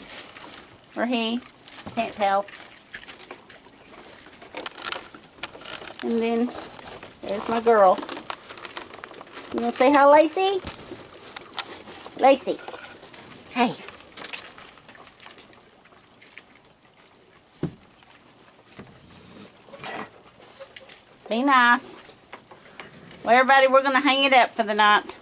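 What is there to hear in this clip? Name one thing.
Raccoons crunch and munch on dry cereal close by.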